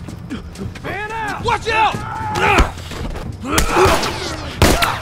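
A man grunts and shouts in a struggle.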